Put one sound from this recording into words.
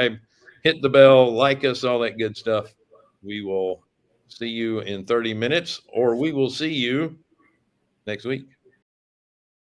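A middle-aged man speaks calmly into a microphone over an online call.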